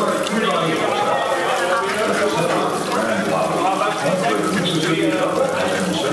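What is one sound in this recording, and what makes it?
A crowd of men and women chatters loudly nearby in an echoing hall.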